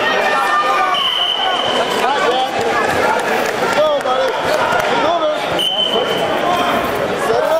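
A referee blows a whistle.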